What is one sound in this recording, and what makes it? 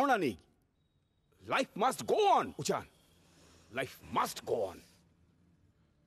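A young man speaks earnestly, close by.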